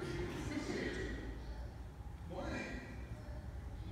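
A man speaks through a microphone in a large echoing room.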